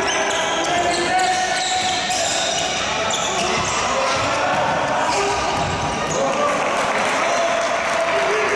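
Sports shoes squeak on an indoor court floor in a large echoing hall.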